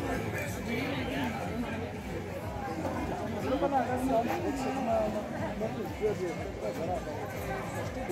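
A crowd of men and women chatters in the distance outdoors.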